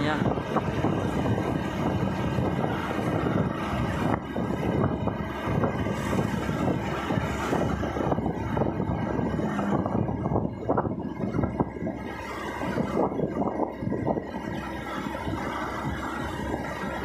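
Wind rushes past an open window.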